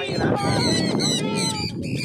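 Boys talk outdoors nearby.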